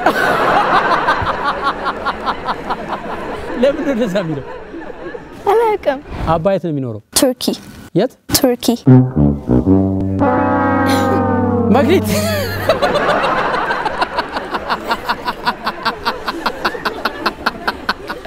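A crowd of women laughs in a large hall.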